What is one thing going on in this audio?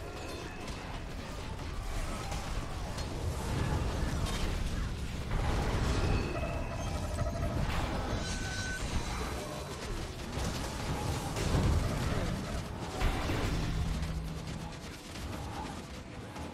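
Weapons clash and thud in battle.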